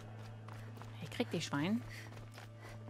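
A woman speaks briefly and with animation into a nearby microphone.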